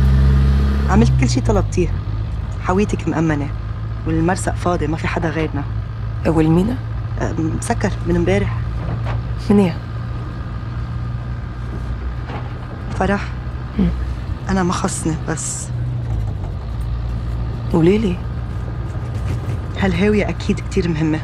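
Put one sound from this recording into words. A woman talks calmly at close range.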